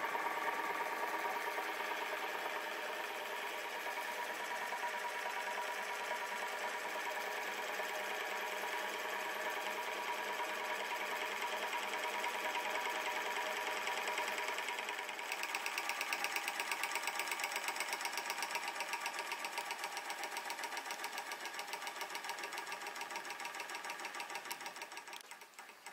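A small engine runs fast with a rapid, steady chuffing and clatter.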